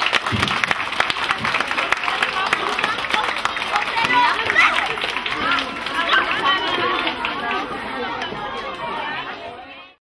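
Young children chatter and shout excitedly in a lively crowd.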